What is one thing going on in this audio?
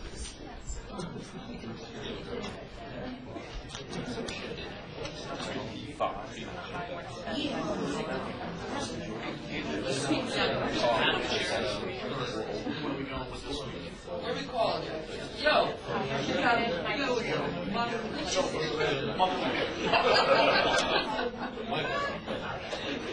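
A man speaks into a microphone over a loudspeaker in a room that echoes a little.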